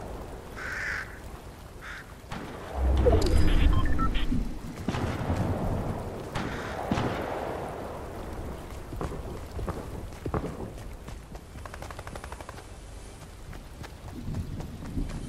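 Footsteps patter quickly on a hard surface.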